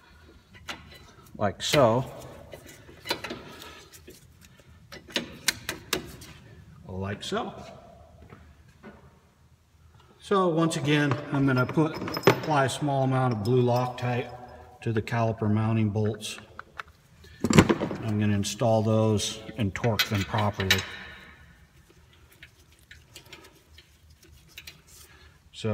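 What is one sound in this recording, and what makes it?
Metal parts click and clatter as a brake caliper is handled.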